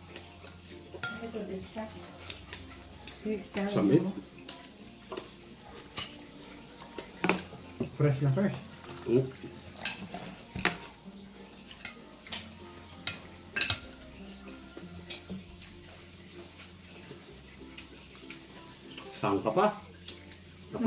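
Mussel shells clink and clatter against a bowl.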